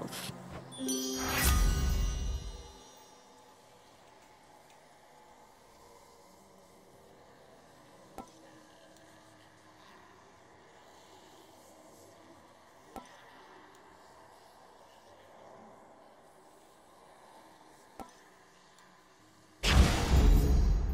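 A shimmering magical swell rises and fades.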